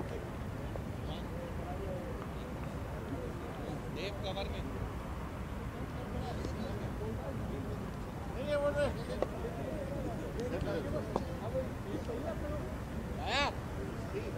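Men call out to each other from a distance outdoors.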